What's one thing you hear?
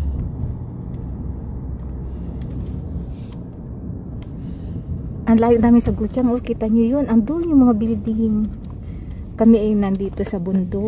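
A car drives along a road with a low, steady rumble.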